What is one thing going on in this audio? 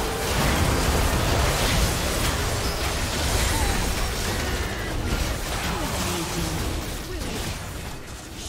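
Game spells crackle and boom in a fast fight.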